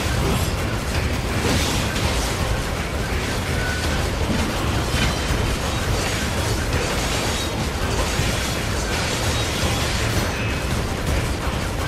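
Swords clash and slash against metal.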